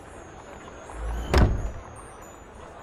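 A heavy wooden chest lid thuds open.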